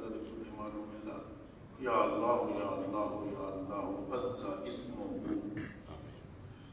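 A man chants through a loudspeaker in a large echoing hall.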